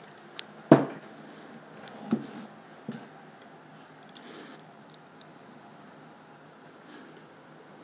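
A knife blade scrapes and cuts close by.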